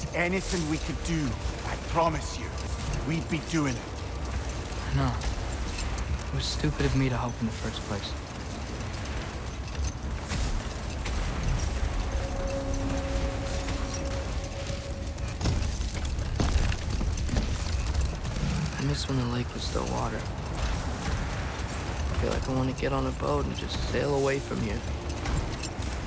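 Sled runners scrape and hiss over snow and ice.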